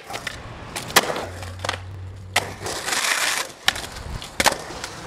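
A skateboard clacks sharply against the ramp's edge.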